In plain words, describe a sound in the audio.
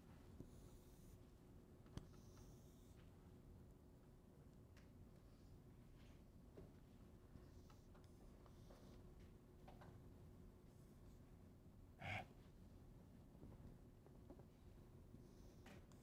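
A marker squeaks faintly on a whiteboard.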